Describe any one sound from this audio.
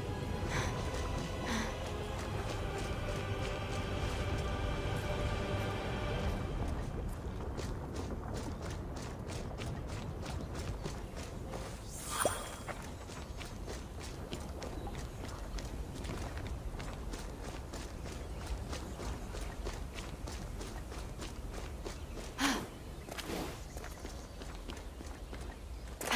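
Quick footsteps patter across stone and then grass.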